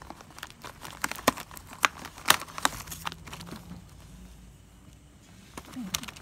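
Plastic wrapping crinkles and crackles close by.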